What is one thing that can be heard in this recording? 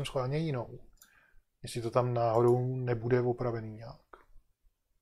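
An elderly man speaks in a drawn-out, sing-song voice close to a microphone.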